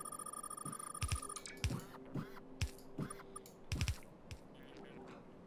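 Heavy pieces thud and click into place one after another.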